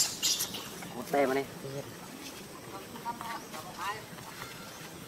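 A baby monkey squeals shrilly, close by.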